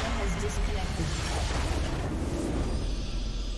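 A magical blast roars and crackles.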